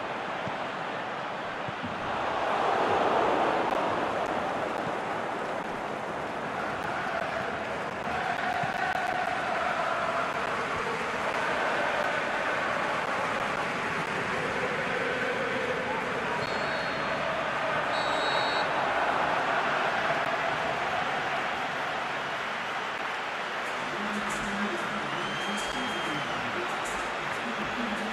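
A large stadium crowd roars and chants steadily, swelling now and then.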